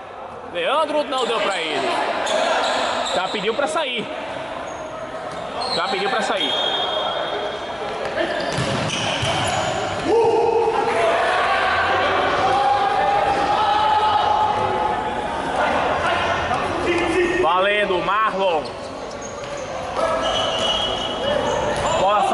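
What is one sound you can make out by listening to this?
Men shout and call out in an echoing hall.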